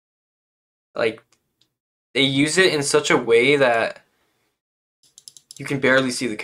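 A young man speaks calmly and close into a microphone, in short phrases.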